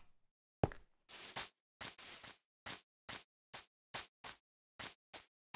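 Footsteps rustle softly on grass.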